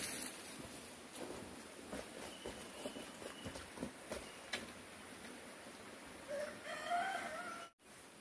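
Footsteps tread through wet grass.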